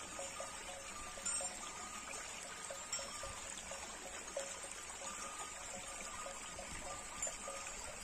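Cows tear and munch grass while grazing nearby.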